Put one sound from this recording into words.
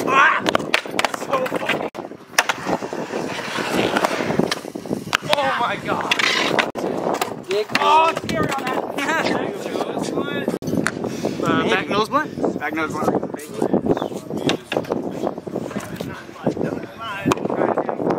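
Skateboard boards clack against concrete.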